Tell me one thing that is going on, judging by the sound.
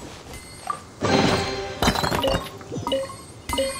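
A treasure chest opens with a bright magical chime.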